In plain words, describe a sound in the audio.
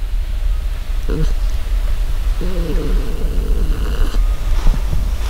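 A dog whines softly.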